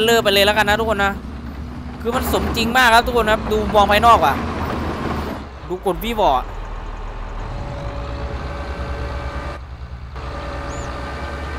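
A diesel engine rumbles steadily.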